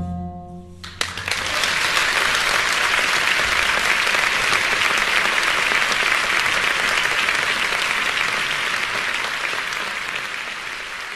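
Wind blows steadily across open ground, rising quickly at first and slowly easing off.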